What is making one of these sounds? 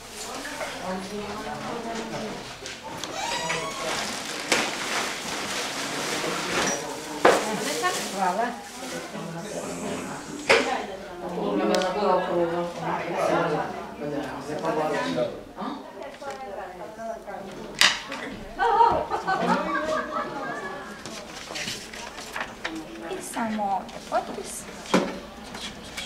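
Men and women talk with one another nearby.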